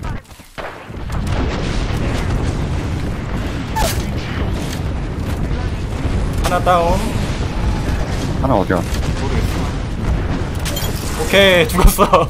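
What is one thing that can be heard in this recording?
Explosions boom and rumble heavily nearby.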